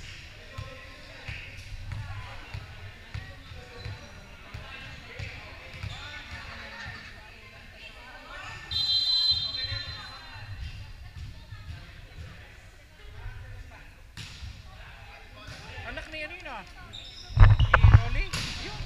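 A crowd of young women chatter in a large echoing gym.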